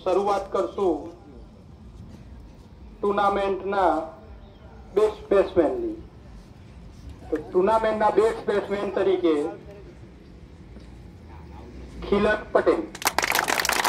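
A man speaks through a loudspeaker in short announcing bursts, outdoors.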